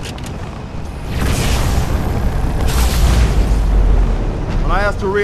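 Explosions rumble deeply.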